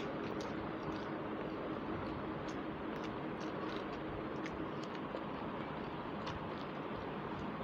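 A woman chews food wetly, close to a microphone.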